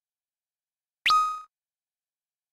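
A bright chime rings as a menu choice is confirmed.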